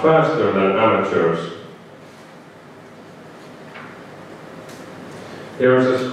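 A young man speaks calmly through a microphone in a room with a slight echo.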